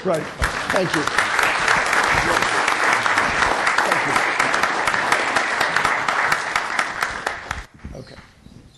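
An audience applauds loudly in a large room, then the clapping stops.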